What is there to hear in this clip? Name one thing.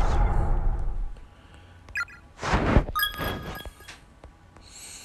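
Short electronic menu beeps chime.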